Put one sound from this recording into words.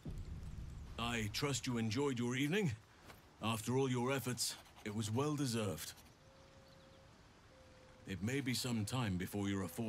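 A man speaks warmly and calmly, close by.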